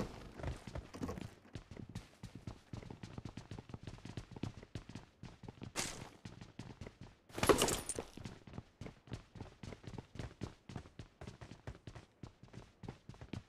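Quick footsteps patter across a hard floor.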